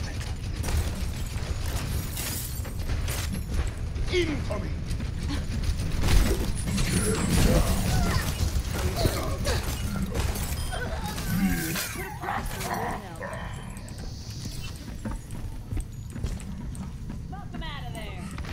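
Heavy metallic footsteps thud steadily.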